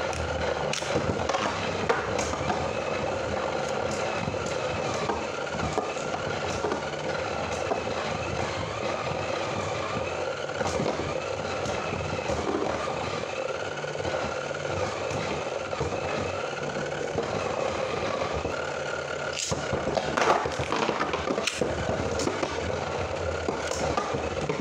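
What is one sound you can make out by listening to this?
Spinning tops clack sharply as they collide.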